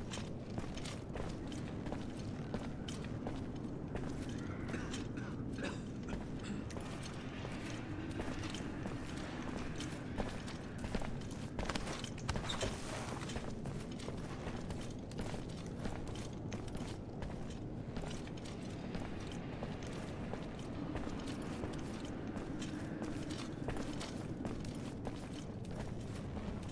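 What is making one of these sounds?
Footsteps walk on a stone floor.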